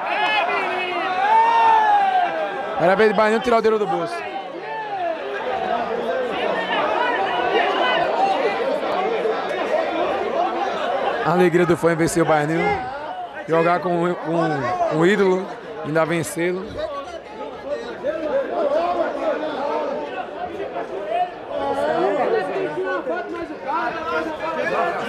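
A crowd of men chatters and murmurs nearby.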